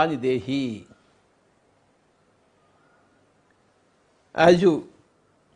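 An elderly man speaks calmly and slowly into a close microphone, pausing between phrases.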